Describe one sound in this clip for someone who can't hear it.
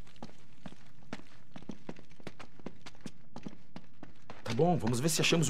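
Footsteps walk at a steady pace on a hard floor.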